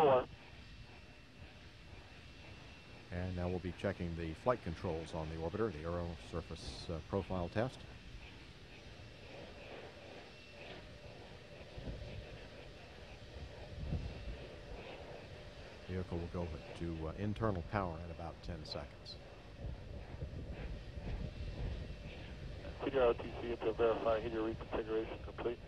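Vapour hisses softly as it vents from a rocket on the launch pad.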